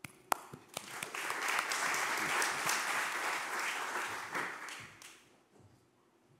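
An audience applauds in a large hall.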